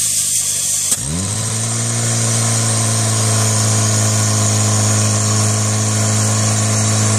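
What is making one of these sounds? A portable pump engine suddenly revs up and then drones loudly and steadily.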